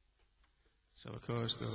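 A man sings close to a microphone.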